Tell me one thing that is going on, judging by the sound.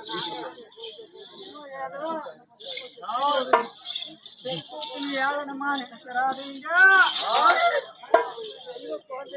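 Men sing and shout loudly nearby.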